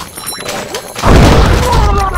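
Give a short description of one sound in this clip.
An explosion booms underwater.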